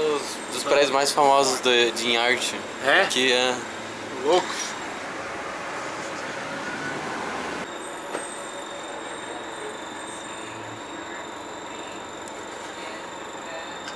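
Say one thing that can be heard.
A bus engine hums steadily as the bus drives.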